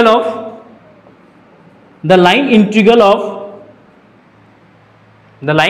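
A young man speaks calmly and clearly in a small echoing room.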